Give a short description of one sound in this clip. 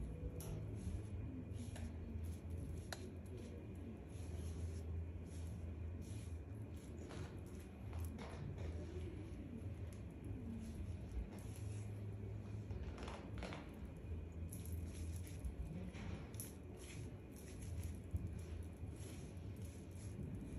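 A brush softly swishes and dabs through wet hair.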